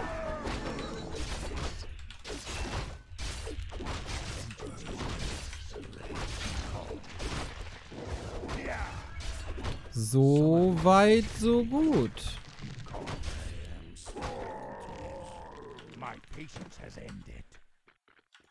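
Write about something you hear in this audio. Game combat sounds of clashing blows and spells play.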